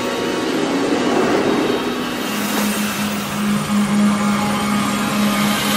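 A magical whoosh swirls and swells.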